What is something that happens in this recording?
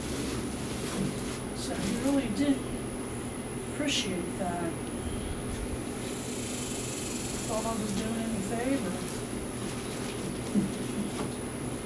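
An elderly woman speaks softly and close by.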